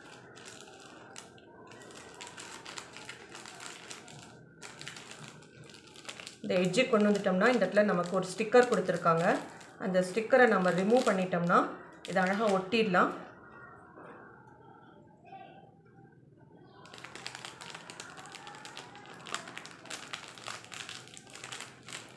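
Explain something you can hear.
A plastic packet crinkles in handling.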